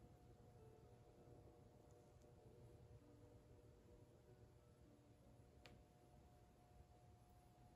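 A pottery wheel hums steadily as it spins.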